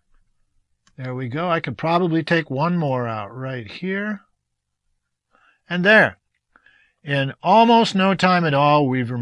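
An older man speaks calmly and clearly into a close microphone.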